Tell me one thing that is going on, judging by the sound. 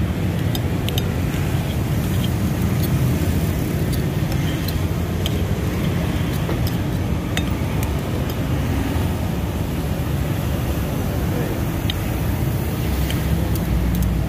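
A knife and fork scrape and tap on a plate.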